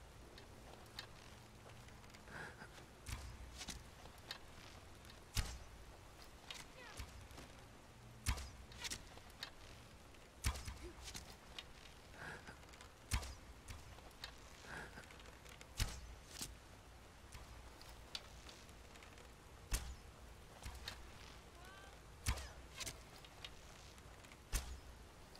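A bow twangs as arrows are loosed again and again.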